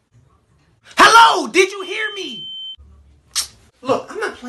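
A young man laughs loudly and shouts close by.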